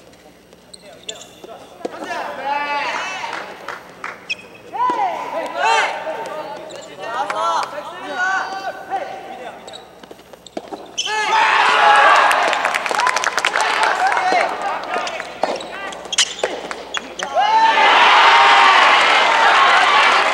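A crowd of young spectators chants and cheers loudly in a large echoing hall.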